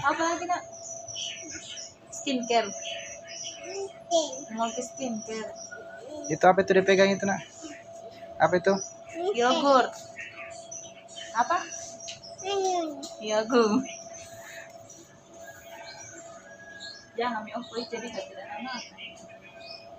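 A young toddler girl babbles and talks close by.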